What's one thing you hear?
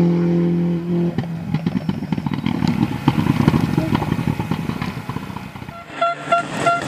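Rally car tyres spin and scrabble on asphalt.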